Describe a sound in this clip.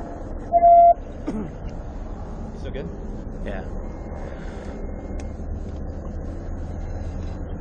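A car engine hums steadily with a low road rumble from inside the car.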